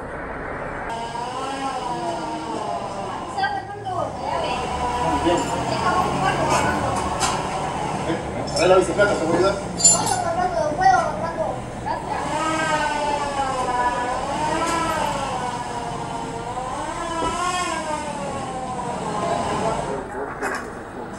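A middle-aged man speaks calmly and clearly, close to a microphone.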